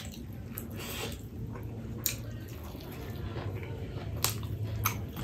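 A man chews food loudly with wet, smacking sounds close to a microphone.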